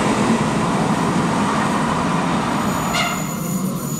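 A diesel train rumbles into a station.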